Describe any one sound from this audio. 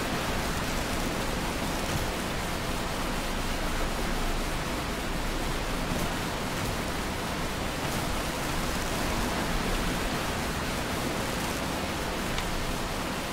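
Leaves and grass rustle as someone crawls through thick undergrowth.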